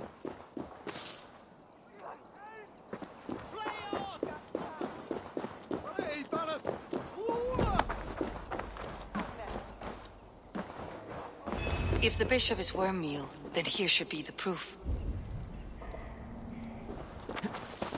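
Footsteps run quickly over dirt and grass.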